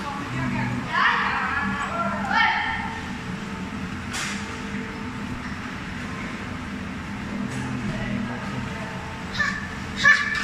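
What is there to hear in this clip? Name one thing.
A young child shouts and squeals in a large indoor hall.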